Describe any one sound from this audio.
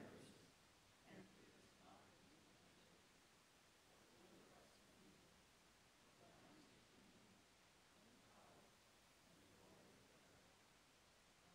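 A man speaks calmly through a loudspeaker in a large echoing hall.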